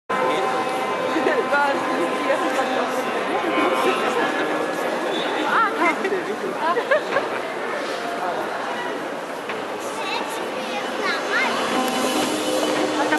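A large crowd chatters outdoors, many voices mixing together.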